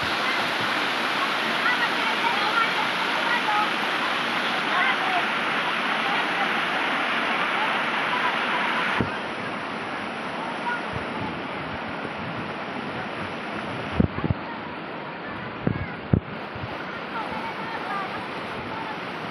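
Water rushes steadily over rocks into a pool.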